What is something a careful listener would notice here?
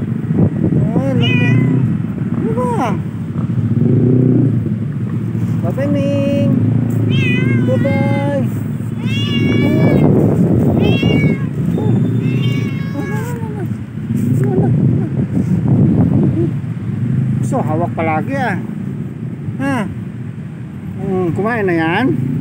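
A cat meows repeatedly up close.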